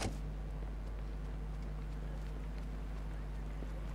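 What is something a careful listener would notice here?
Footsteps run quickly across pavement.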